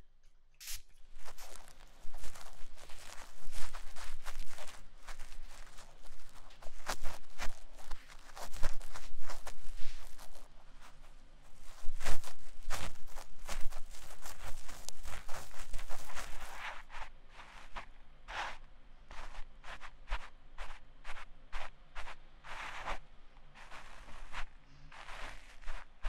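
A young woman talks playfully, close to a microphone.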